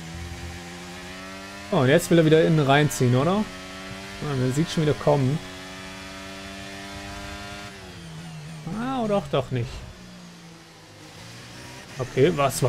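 A racing car engine whines at high revs, dropping in pitch as the car slows.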